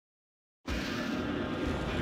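A torch fire crackles.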